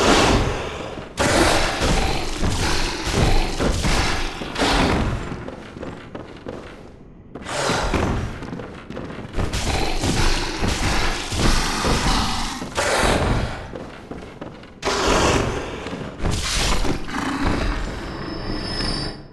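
A beast snarls and roars close by.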